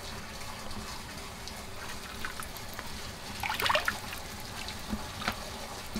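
Oil pours and trickles into a metal pot.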